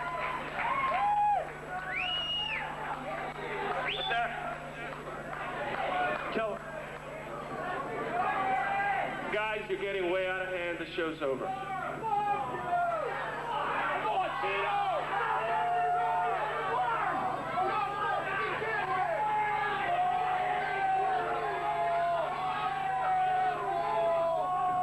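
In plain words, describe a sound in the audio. An electric guitar plays loudly through an amplifier.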